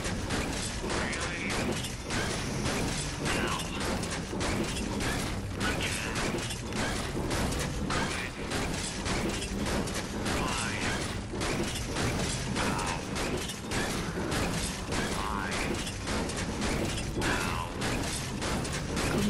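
A pickaxe strikes a metal machine again and again with sharp clanks.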